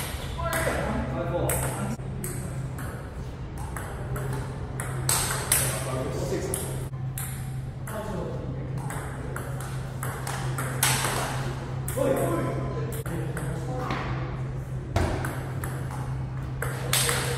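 A ping-pong ball clicks back and forth between paddles and the table.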